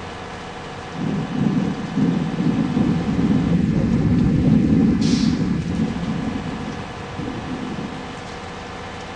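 A passing truck rumbles loudly.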